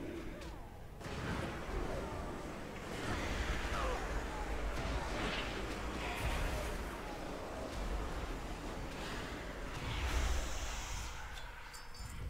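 Magic spells whoosh and crackle in bursts.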